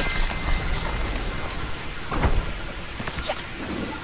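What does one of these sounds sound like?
Rocks crumble and crash down in a cloud of dust.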